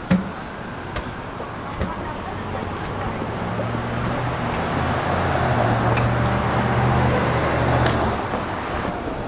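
High heels click on pavement.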